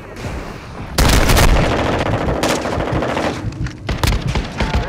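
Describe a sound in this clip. Rapid gunfire rattles in close bursts.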